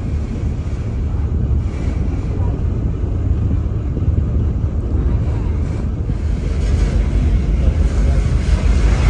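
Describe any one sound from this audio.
Wind blows steadily outdoors with a low rumble.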